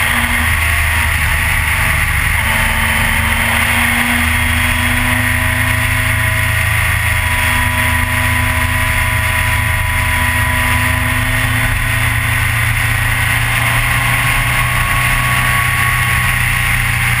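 A motorcycle engine roars steadily close by at speed.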